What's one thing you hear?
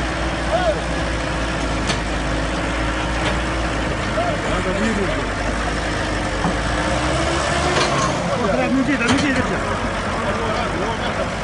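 A digger's bucket scrapes and drops loose earth.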